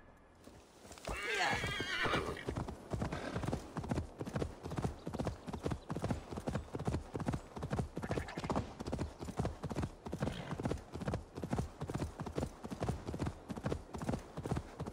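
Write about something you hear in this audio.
A horse's hooves thud rapidly on soft ground at a gallop.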